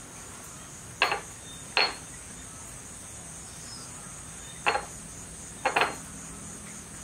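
A knife scrapes and taps against a plastic container.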